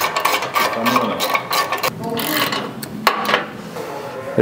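A ratchet wrench clicks as a bolt is turned.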